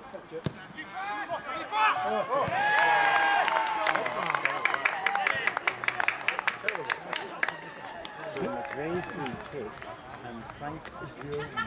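Young men shout and cheer loudly across an open field.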